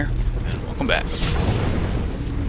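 A seal bursts with a loud rushing blast.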